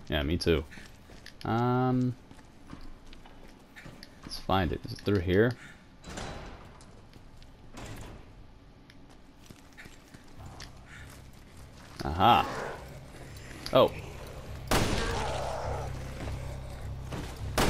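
Footsteps crunch slowly across a gritty floor.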